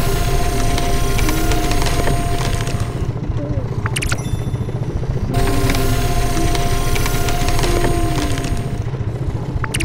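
Flames roar and crackle inside a furnace.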